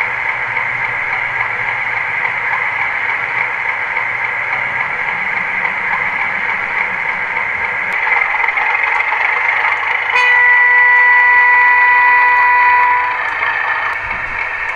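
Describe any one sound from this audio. A model diesel locomotive hums with a steady engine drone.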